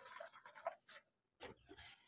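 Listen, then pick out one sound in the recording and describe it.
Hot liquid pours from a kettle into a mug.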